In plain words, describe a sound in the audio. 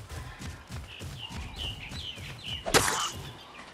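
A small creature squeals in high chirps.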